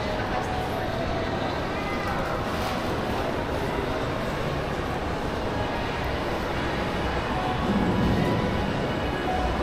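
A low murmur of distant voices echoes through a large indoor hall.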